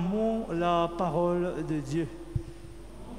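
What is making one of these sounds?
A man sings a short chant through a microphone, echoing in a large hall.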